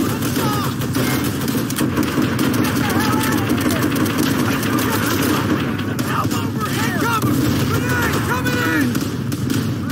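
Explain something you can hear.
Gunshots crack rapidly and repeatedly nearby.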